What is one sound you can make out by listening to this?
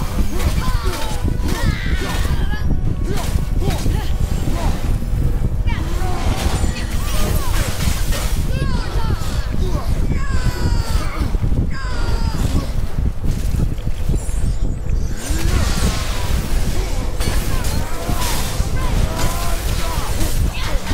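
An axe swings and strikes with heavy blows.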